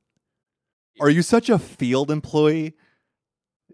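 Another young man speaks loudly into a handheld microphone.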